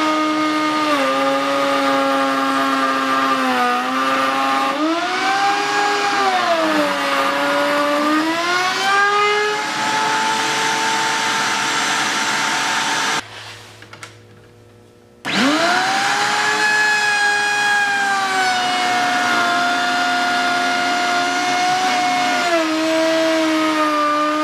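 A table saw whines loudly, its pitch dipping and rising as it cuts through wood.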